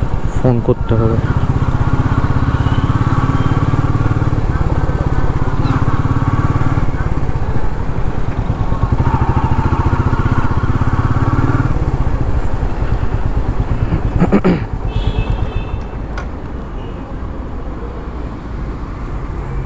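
A motorcycle engine rumbles steadily at close range.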